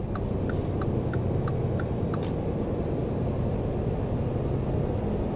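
A truck engine rumbles steadily as the truck drives along.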